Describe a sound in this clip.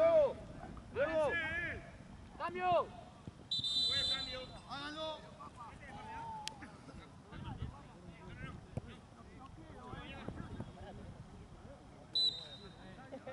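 Young men shout to each other outdoors across a large open field.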